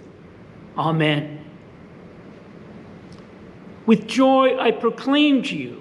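An elderly man speaks calmly and solemnly into a nearby microphone.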